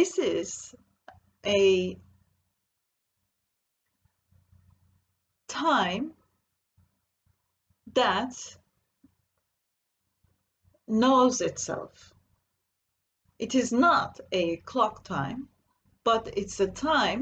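A middle-aged woman speaks calmly in short phrases with pauses, close to a microphone as if on an online call.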